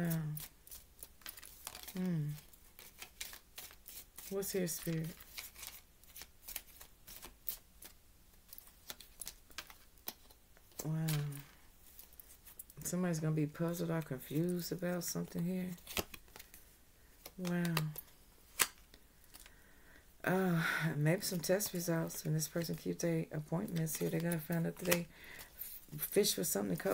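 Paper cards rustle and shuffle.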